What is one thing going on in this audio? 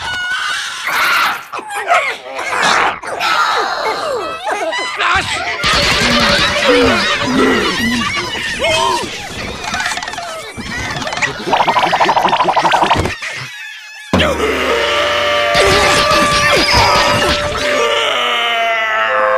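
Cartoon characters shriek and yell in high, squeaky voices.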